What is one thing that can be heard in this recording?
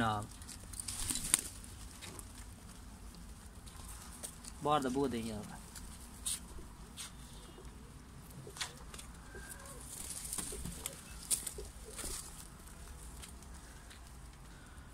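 Pigeons peck at grain on a hard floor with quick light taps.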